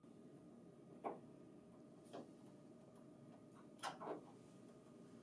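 A screwdriver clicks softly as it turns a screw.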